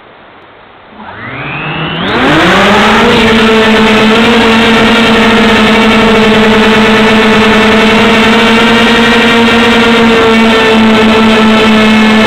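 A small motor whirs up to speed and then hums steadily.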